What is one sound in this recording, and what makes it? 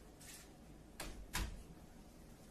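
A wooden door swings and thuds shut.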